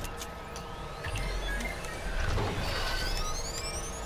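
Switches click as systems are flipped on.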